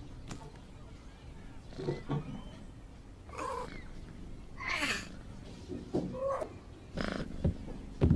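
A kitten meows softly a few times.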